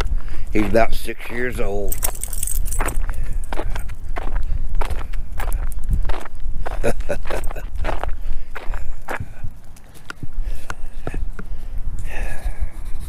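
Footsteps crunch steadily on a paved path.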